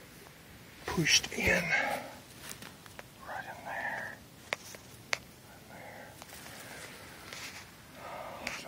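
Footsteps crunch and rustle through dry grass and leaves.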